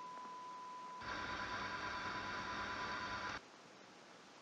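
Loud static hisses in a short burst.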